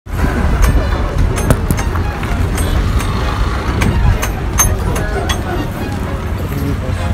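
A bus engine rumbles steadily up close.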